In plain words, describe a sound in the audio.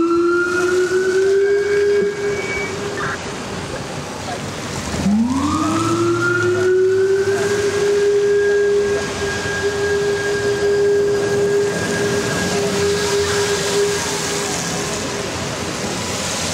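A police siren wails nearby, rising and falling.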